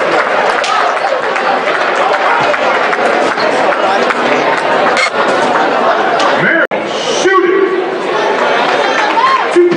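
A large crowd chatters and cheers in an echoing hall.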